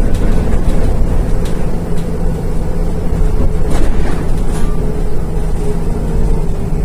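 Loose fittings inside a bus rattle and clatter.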